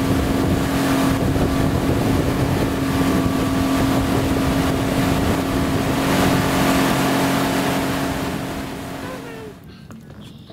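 A boat's motor drones loudly.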